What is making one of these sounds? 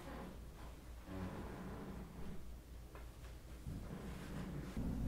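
A young boy speaks quietly close by.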